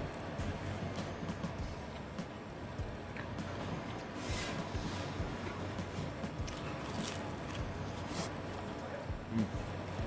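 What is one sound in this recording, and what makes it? A young man chews and munches food.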